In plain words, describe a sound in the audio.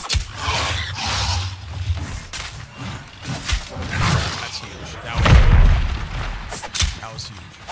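Heavy impacts and thuds boom during combat.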